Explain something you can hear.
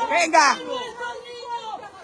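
A woman shouts loudly and angrily close by.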